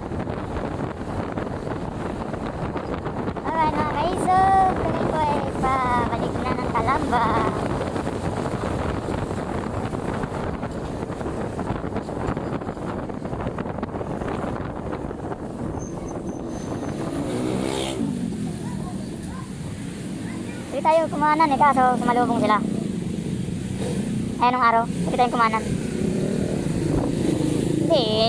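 A motorcycle engine hums steadily as it rides along a road.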